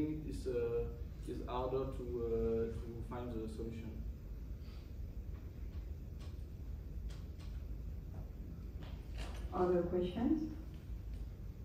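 A young man speaks calmly into a microphone, heard from a distance in a large room.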